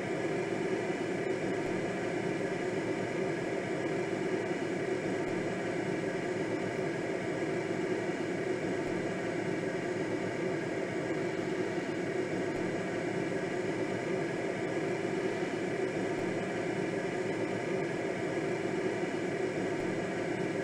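Wind rushes steadily past a glider's canopy.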